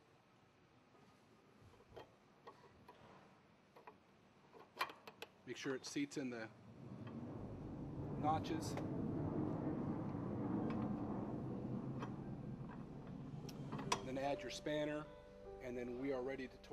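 Metal parts click and clink together.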